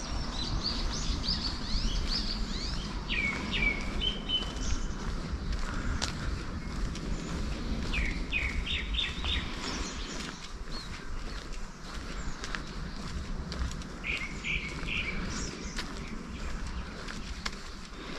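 Footsteps tread steadily on a paved path outdoors.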